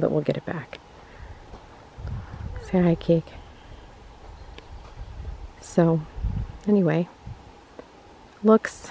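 A young woman speaks animatedly close by.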